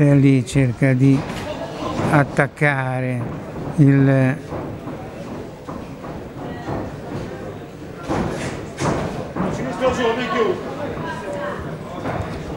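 Boxing gloves thud as boxers trade punches.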